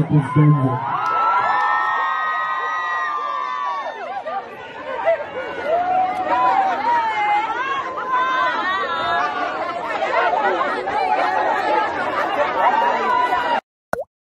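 A crowd sings along loudly.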